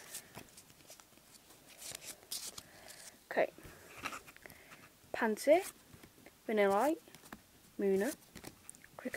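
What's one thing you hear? Playing cards rustle and slide against each other in someone's hands.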